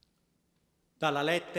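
A man begins to chant loudly through a microphone, echoing in a large hall.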